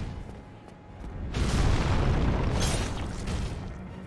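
A huge axe swings and crashes into the ground.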